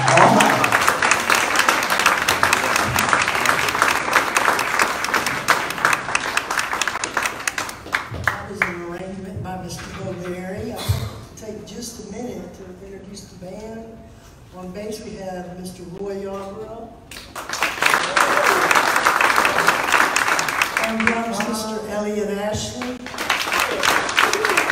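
A jazz band plays.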